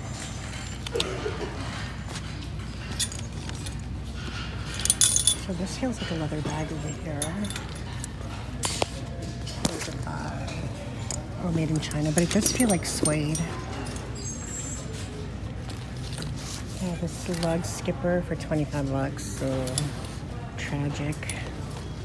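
Metal hangers clink and scrape along a rail.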